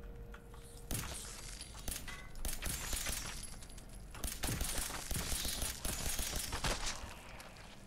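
A gun fires in rapid shots.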